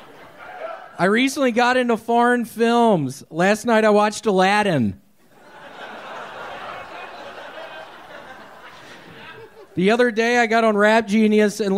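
A man speaks loudly and in a drawn-out voice through a microphone and loudspeakers.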